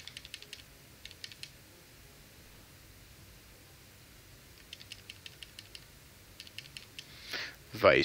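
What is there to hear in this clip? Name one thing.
Quick electronic blips chirp in short bursts.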